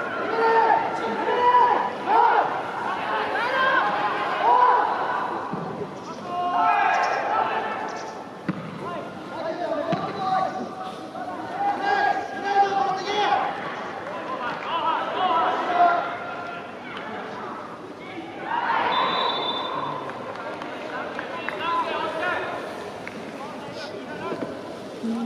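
A large crowd of spectators chants and sings loudly in an open stadium.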